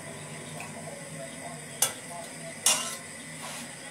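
An egg cracks against a pan's rim.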